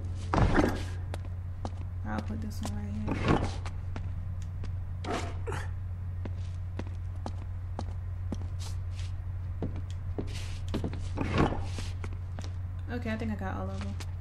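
A young woman talks casually into a microphone.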